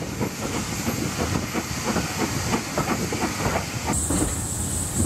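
A steam train chuffs in quick, rhythmic puffs.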